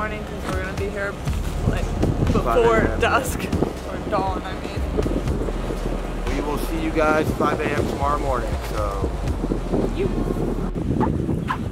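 A man talks calmly outdoors, close by.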